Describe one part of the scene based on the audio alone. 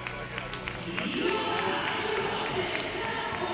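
Young men shout and cheer together in a huddle.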